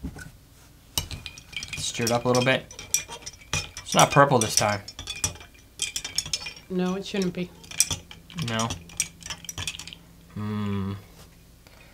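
A bar spoon clinks against a glass as it stirs a drink.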